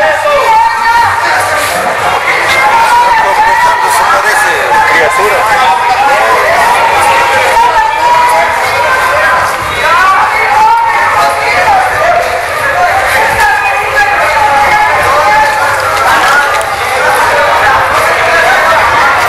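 A crowd of men and women shouts and chatters loudly outdoors.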